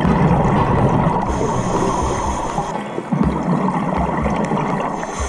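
Bubbles from a scuba regulator gurgle and rumble close by.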